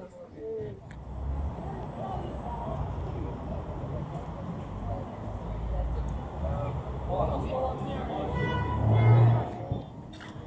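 Traffic hums outdoors.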